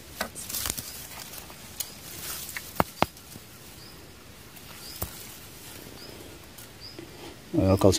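Dry leaves and grass rustle as a hand digs through them.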